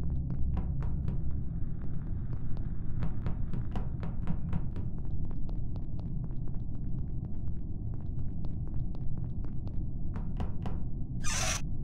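Quick light footsteps patter steadily.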